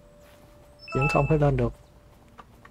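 A short electronic notification chime rings out.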